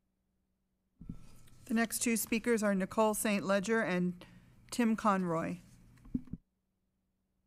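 A woman speaks calmly through a microphone in a large room.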